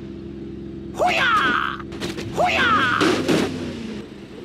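A truck's wheels thud over speed bumps.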